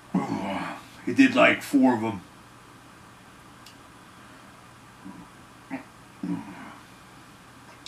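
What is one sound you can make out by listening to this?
A man speaks close to a microphone in short bursts, with long pauses.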